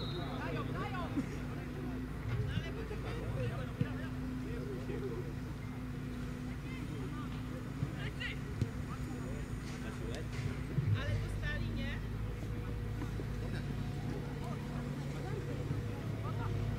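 A football thuds as it is kicked in the distance.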